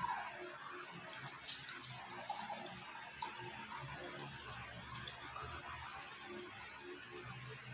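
Water pours from a jug into a glass.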